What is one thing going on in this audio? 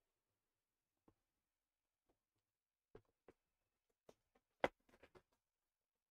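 Hands rustle and tap plastic sheeting.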